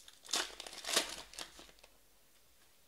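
A foil wrapper crinkles and tears as a pack is opened.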